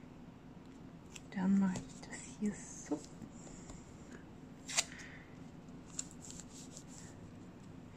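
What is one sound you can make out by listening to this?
Masking tape peels and tears with a crinkling rustle.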